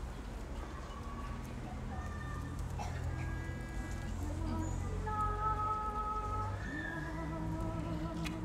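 A choir of women and men sings slowly together outdoors.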